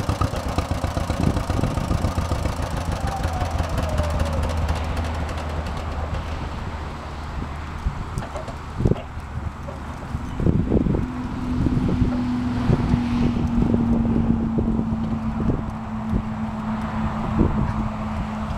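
An old tractor engine idles with a low, uneven chugging.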